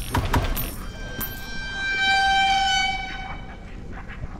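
A creature lets out an eerie, ringing shriek.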